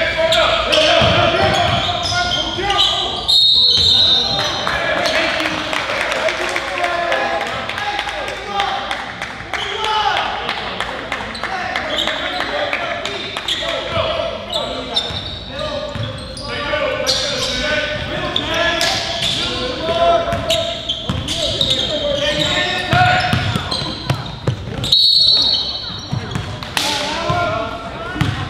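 Young men shout and call out across an echoing hall.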